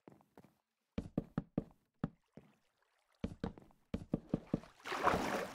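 Wooden blocks knock as they are placed.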